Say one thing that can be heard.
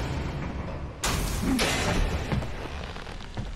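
Metal grinds loudly with a rush of sparks.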